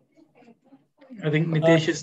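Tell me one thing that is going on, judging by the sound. An older man speaks calmly and clearly over an online call.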